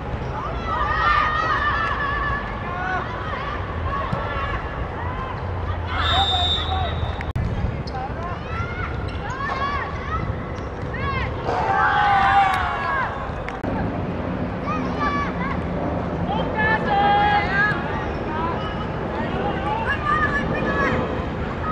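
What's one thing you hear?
Children shout and call out across an open playing field.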